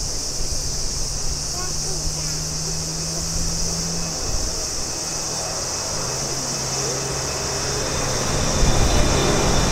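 A Boeing 777 jet airliner roars overhead on landing approach, outdoors.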